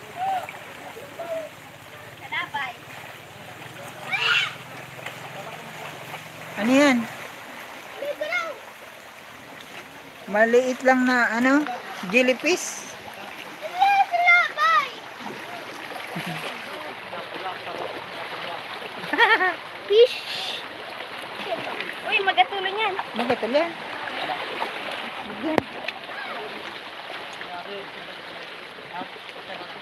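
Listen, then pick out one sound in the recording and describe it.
Small waves wash over rocks at the shore.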